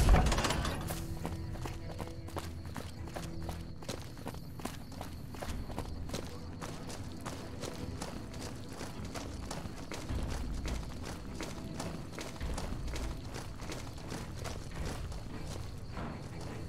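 Footsteps fall steadily on hard ground.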